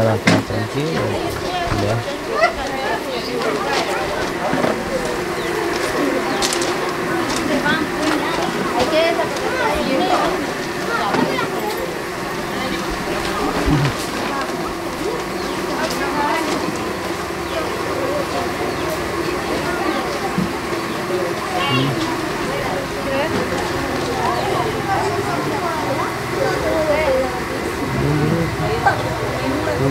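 A crowd of women and children chatter nearby, outdoors.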